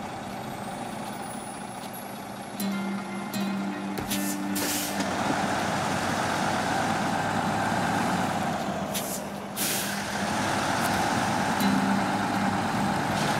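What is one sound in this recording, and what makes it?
A heavy truck engine rumbles and strains.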